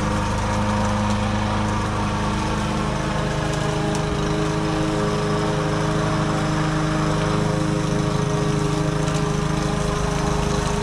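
A lawn mower engine drones steadily nearby.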